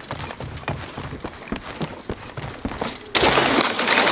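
Quick footsteps thud on wooden boards.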